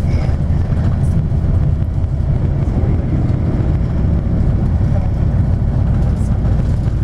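A vehicle's engine rumbles steadily from inside as it drives along a road.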